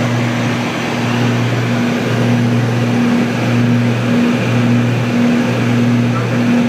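A small plane's engine drones steadily from close by.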